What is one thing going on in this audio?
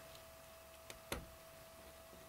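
A metal latch clicks shut.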